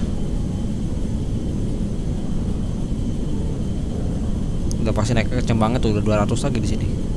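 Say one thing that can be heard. Jet engines roar with a steady low rumble.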